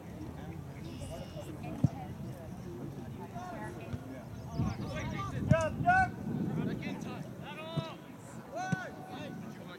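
Young players shout to each other in the distance outdoors.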